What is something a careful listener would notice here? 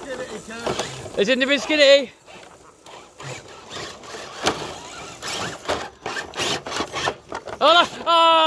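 Small electric motors whir as toy trucks crawl along.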